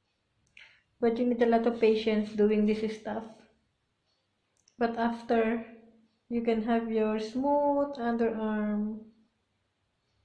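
A woman sings close by.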